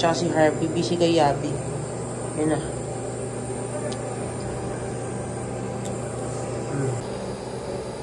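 A nebulizer machine hums steadily.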